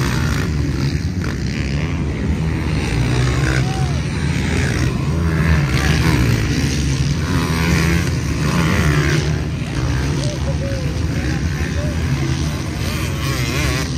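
Dirt bike engines roar and whine across the sand.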